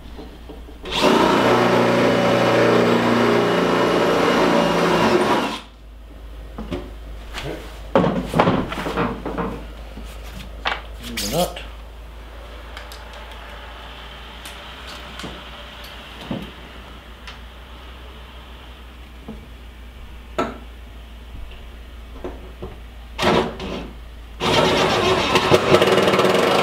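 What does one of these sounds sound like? A cordless drill whirs, driving a bolt into a metal bracket.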